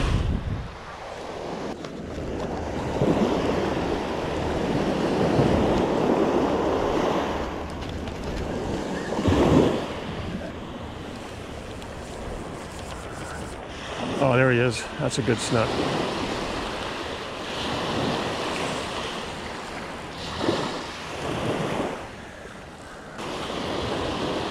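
Wind blows across the beach.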